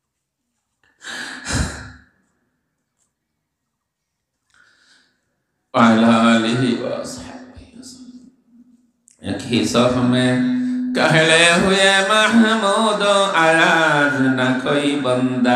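An elderly man chants and preaches loudly into a microphone, heard through a loudspeaker.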